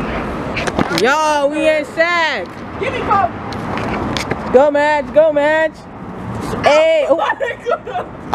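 A young woman shouts and whoops loudly close by.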